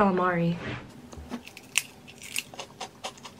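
A young woman crunches a crisp snack.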